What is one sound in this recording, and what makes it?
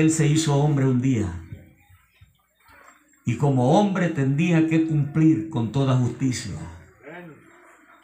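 A middle-aged man speaks loudly and with animation through a microphone and loudspeakers.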